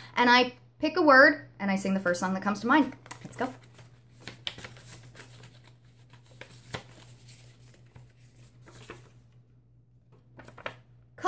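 Paper cards rustle in a woman's hand.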